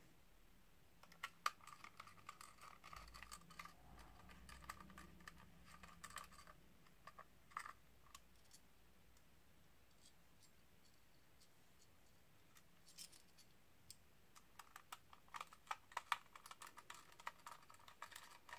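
A small screwdriver clicks and ticks as screws are turned.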